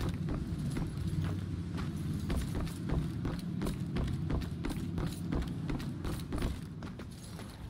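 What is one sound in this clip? Quick footsteps thud on wooden boards.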